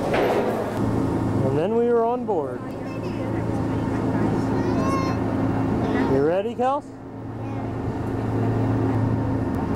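A boat engine hums low and steadily.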